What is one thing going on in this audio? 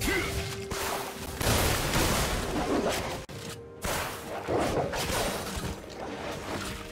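Magic spells crackle and blast in a fast fantasy battle.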